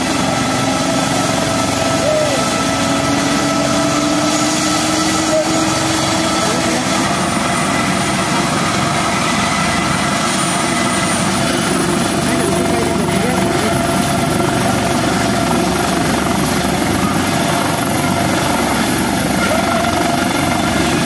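A helicopter's turbine engine whines loudly and steadily nearby.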